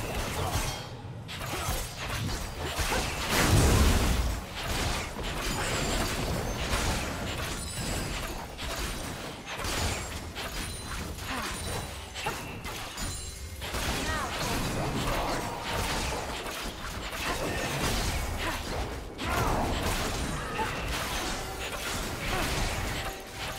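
Fighting sound effects from a video game whoosh, clash and crackle in quick bursts.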